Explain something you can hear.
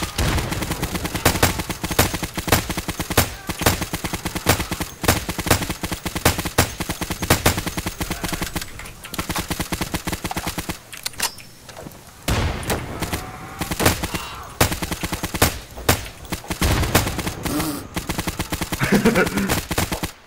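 A rifle fires in rapid bursts, each shot sharp and loud.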